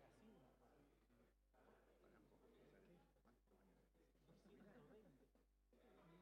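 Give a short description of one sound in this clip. Many men and women talk at once in a large echoing hall.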